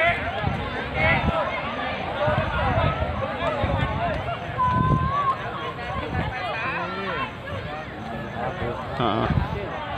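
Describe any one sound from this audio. Men in the crowd shout and call out.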